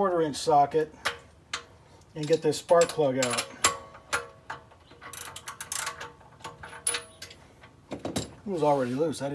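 Metal tools click and clink against an engine.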